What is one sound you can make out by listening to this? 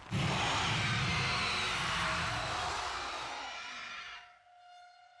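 A monster snarls and roars loudly.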